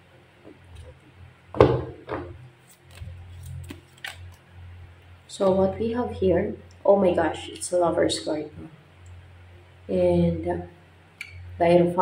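Playing cards riffle and slap as a deck is shuffled by hand.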